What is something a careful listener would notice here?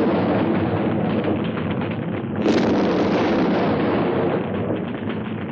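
A huge explosion roars and rumbles.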